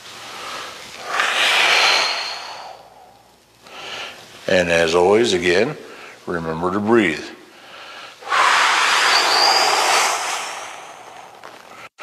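A man breathes out heavily.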